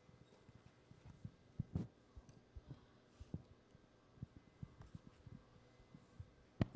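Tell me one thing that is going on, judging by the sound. A handheld microphone thumps and rustles as it is handled close by.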